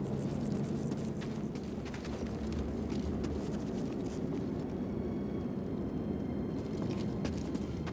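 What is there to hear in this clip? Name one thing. Footsteps scuff on rock.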